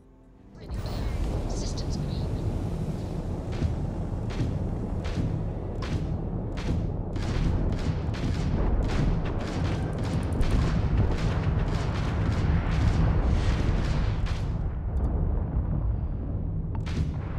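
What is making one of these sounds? A spacecraft engine rumbles deeply and steadily.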